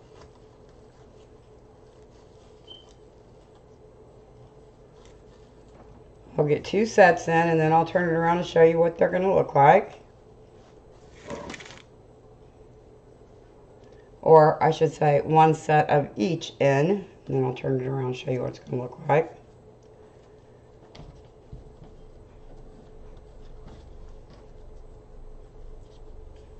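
Plastic mesh and ribbon rustle softly as hands handle them.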